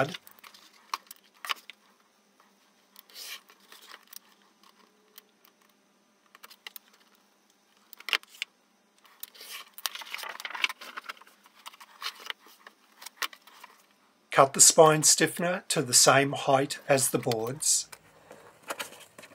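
Paper rustles and slides as it is handled.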